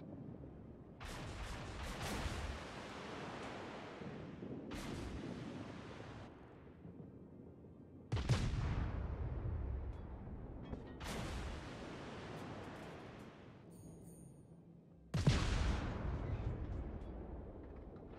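Heavy naval guns fire in booming salvos that rumble away.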